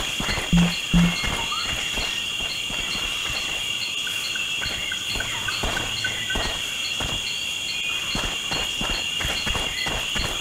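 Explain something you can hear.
Footsteps tread on dirt.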